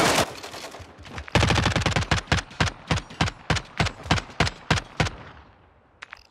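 Rapid gunfire rattles in quick bursts and echoes away.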